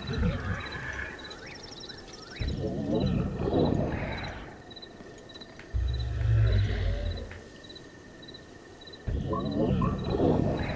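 A giant snores loudly in deep, slow rumbling breaths.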